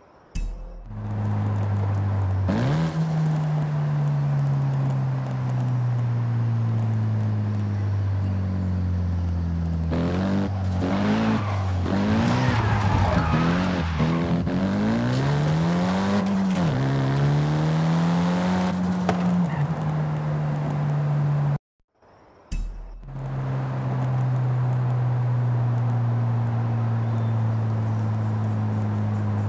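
A car engine hums steadily at cruising speed.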